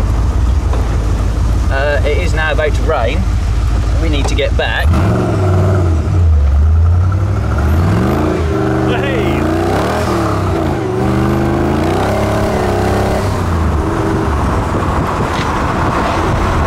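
Wind rushes loudly past an open car.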